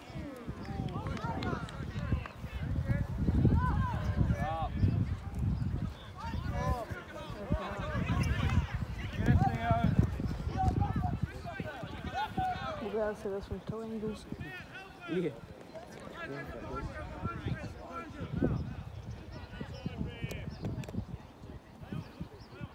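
Players shout and call out across an open field, outdoors.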